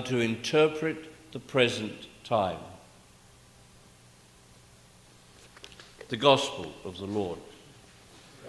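An elderly man speaks calmly through a microphone in a reverberant room.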